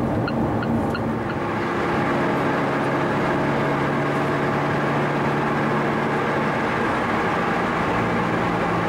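Tyres roll on asphalt with a steady rushing noise.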